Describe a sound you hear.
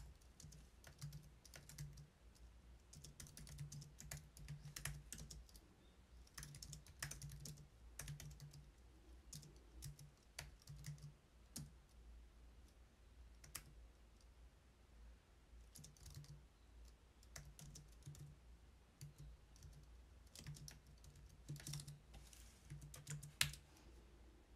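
Keys clack rapidly on a keyboard.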